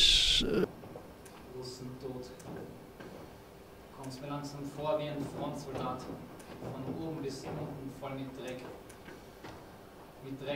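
A woman speaks expressively on a stage, heard from a distance in the hall.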